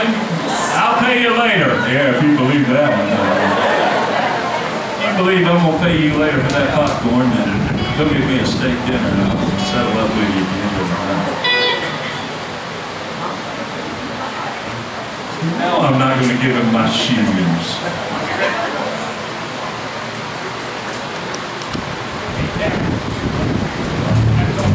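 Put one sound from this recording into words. A live band plays on stage in an echoing room.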